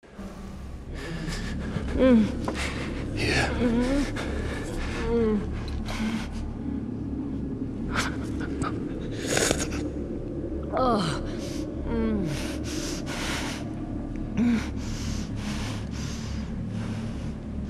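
An elderly man speaks in a low, rasping voice close by.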